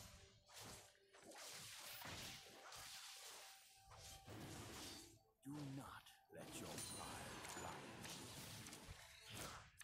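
Magic spells crackle and blast in a fast, noisy battle.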